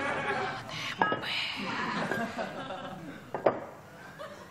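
Ceramic dishes clink on a wooden table.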